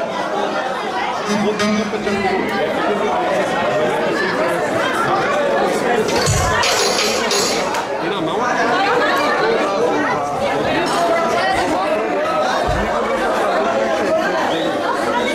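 A band plays lively music through loudspeakers.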